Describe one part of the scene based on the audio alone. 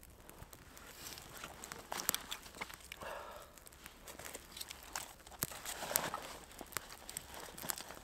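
Sticks rustle and knock together.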